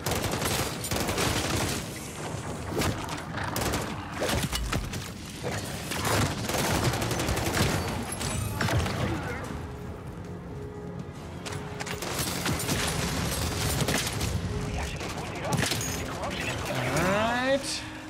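Rapid gunfire crackles and bursts with explosions.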